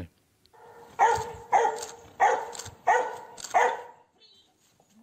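A dog barks repeatedly.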